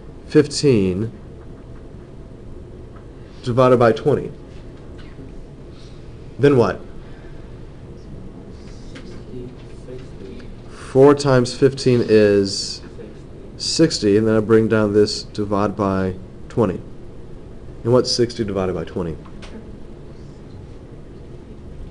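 A marker squeaks faintly on paper.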